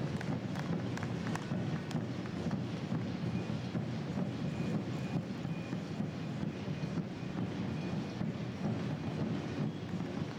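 A runner's shoes patter steadily on the road.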